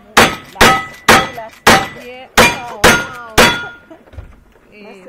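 Metal targets ring out when struck by bullets.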